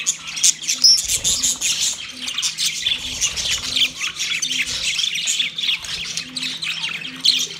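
Many budgerigars chirp and warble busily nearby.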